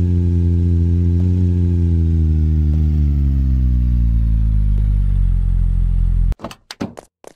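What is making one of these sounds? A loud machine drones with a deep hum that slowly drops in pitch.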